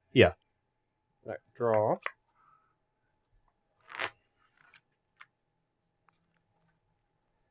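Playing cards are shuffled and tapped by hand.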